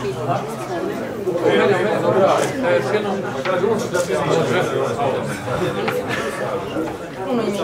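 Several men and women chatter nearby in a room.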